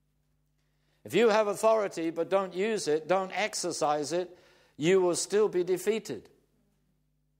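An elderly man speaks calmly and clearly close to a microphone.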